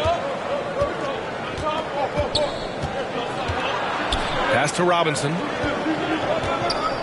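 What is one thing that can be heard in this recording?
A basketball bounces on a hardwood court with dull thumps.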